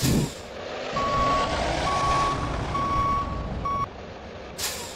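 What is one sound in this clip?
A warning beeper beeps in short even pulses.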